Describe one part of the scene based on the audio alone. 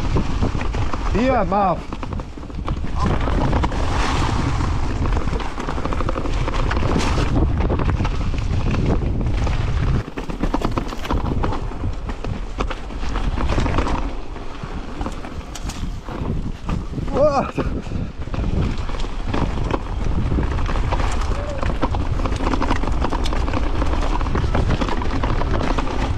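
Bicycle tyres crunch and rattle over dry leaves and dirt.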